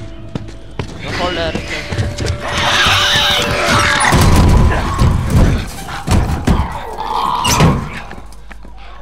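Heavy thuds and blows land in a violent struggle.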